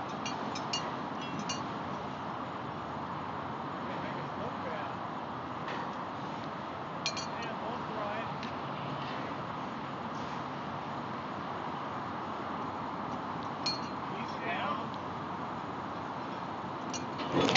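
Metal clanks sharply as a worker bolts a steel column.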